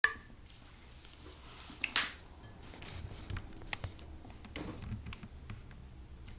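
Book pages rustle as they are handled.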